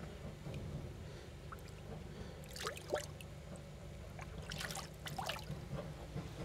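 Water splashes as a fish is handled.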